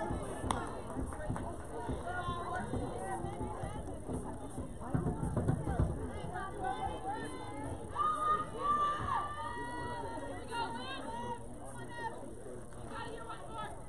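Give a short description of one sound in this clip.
Young women call out and chatter across an open outdoor field.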